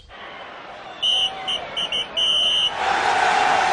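A referee blows a whistle in short, shrill blasts.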